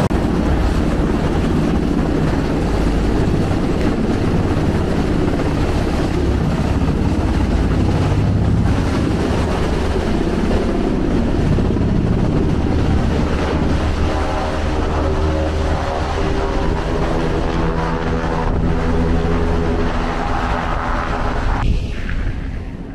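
Waves churn and rush along a ship's hull.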